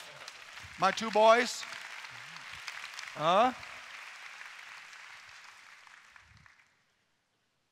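A crowd applauds in a large hall and the clapping fades away.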